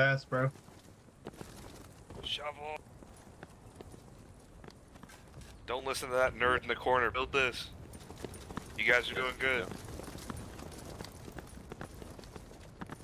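Footsteps tread on stone paving.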